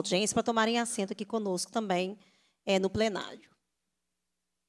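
A woman speaks calmly into a microphone, heard through a sound system.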